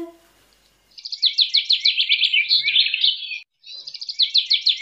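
Small birds chirp and twitter rapidly.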